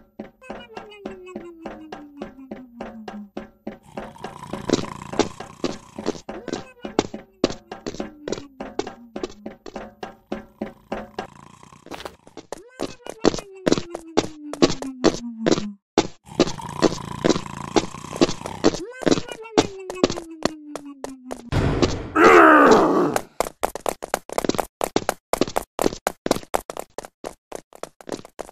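Quick footsteps patter steadily as a game character runs.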